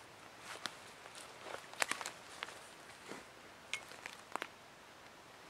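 Footsteps crunch and rustle on dry leaves and twigs.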